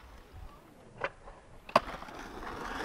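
A skateboard deck clacks sharply against the ground.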